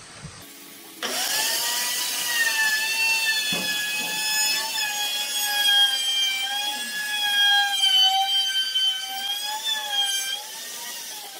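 A plunge router whines as it routes a wooden edge.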